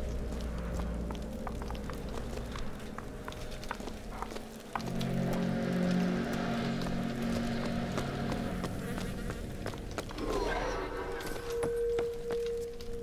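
Footsteps tap on cobblestones.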